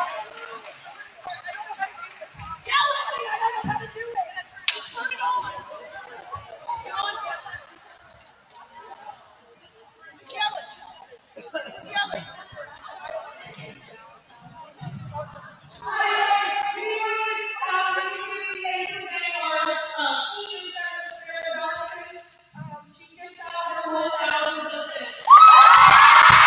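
Young women call out and chatter across a large echoing gym.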